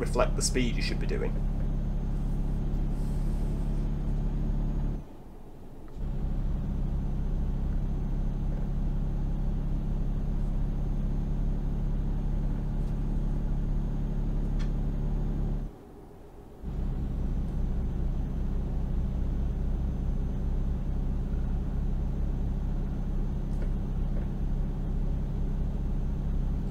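A truck engine drones steadily and drops off briefly twice as the gears change.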